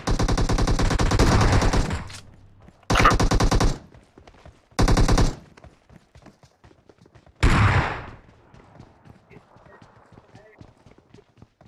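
Footsteps patter quickly across hard ground.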